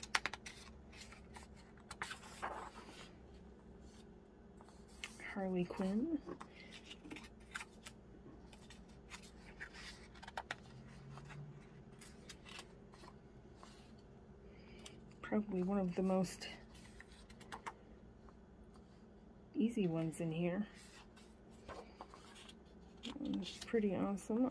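Paper pages rustle and flip as they are turned by hand.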